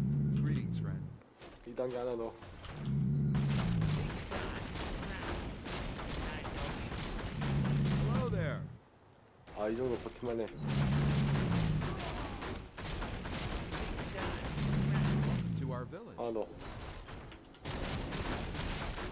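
Weapons clash and strike again and again in a fight.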